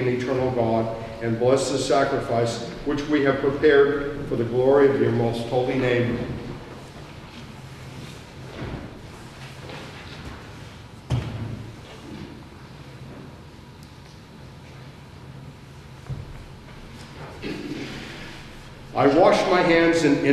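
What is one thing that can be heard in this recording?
An elderly man chants into a microphone in an echoing hall.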